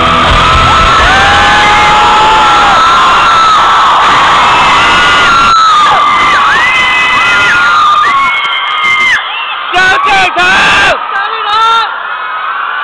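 A woman sings loudly through loudspeakers in a large echoing arena.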